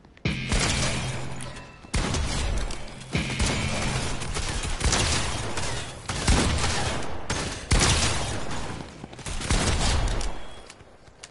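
Shotgun blasts ring out loudly, one after another.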